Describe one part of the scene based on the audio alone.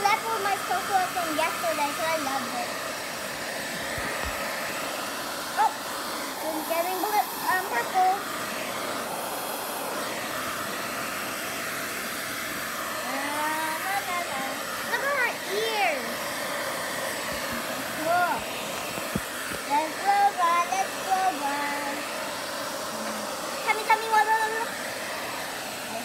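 A hair dryer blows with a steady whooshing roar.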